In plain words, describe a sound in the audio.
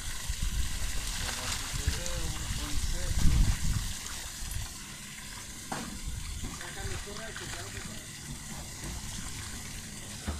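Fish thrash and splash in the water.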